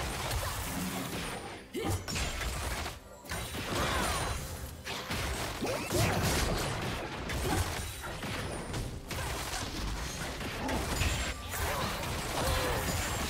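Magic blasts and sword clashes crackle and boom in a fast fight.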